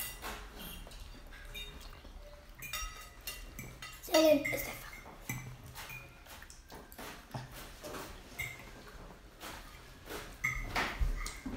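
Forks clink against plates.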